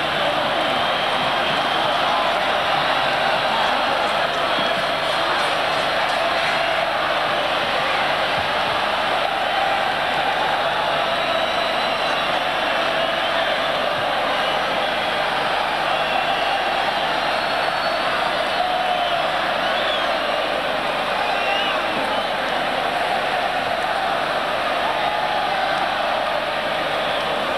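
A huge crowd cheers and roars steadily in a vast open stadium.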